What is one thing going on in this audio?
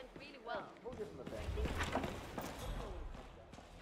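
Heavy wooden doors swing open.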